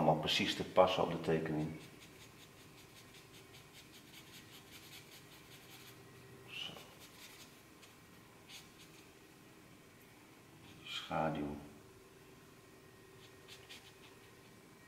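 A marker squeaks and scratches on paper.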